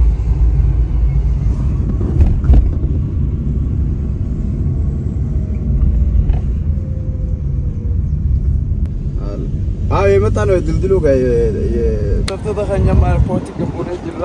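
A car engine and tyres rumble low and steady from inside a moving car.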